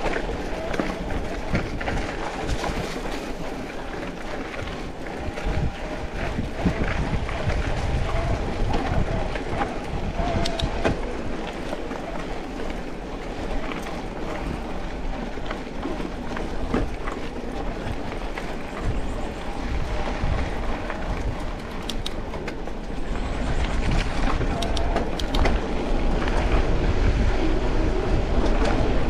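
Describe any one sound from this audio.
Wind rumbles against the rider, outdoors.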